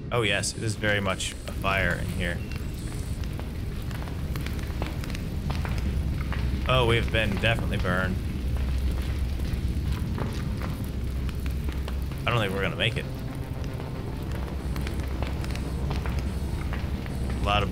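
Fire roars and crackles close by.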